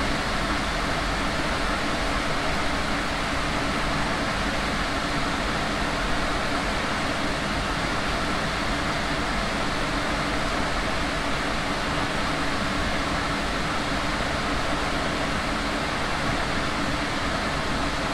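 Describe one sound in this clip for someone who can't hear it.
A tram rumbles steadily along the rails at speed.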